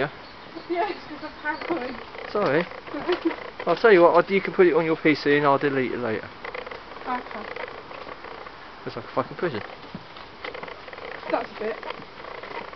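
A woman talks nearby in a casual tone.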